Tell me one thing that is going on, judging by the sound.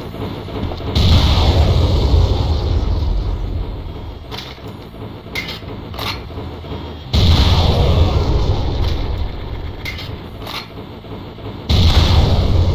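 Rockets explode with a loud rumbling boom.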